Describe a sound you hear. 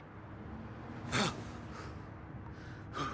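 Bedsprings creak as a man sits on a bed.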